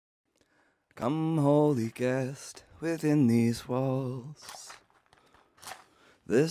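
A man sings close to a microphone.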